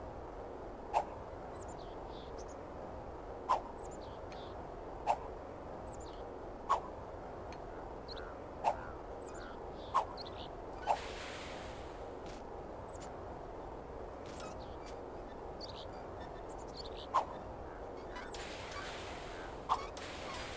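A small game character lands with soft thumps.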